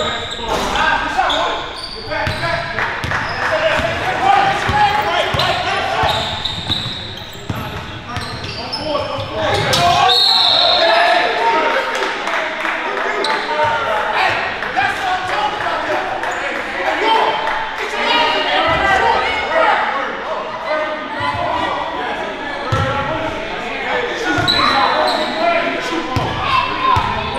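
Young men shout and call out to each other in a large echoing gym.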